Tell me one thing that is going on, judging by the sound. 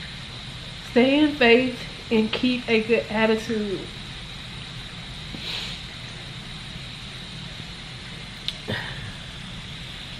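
A young woman reads aloud with excitement close by.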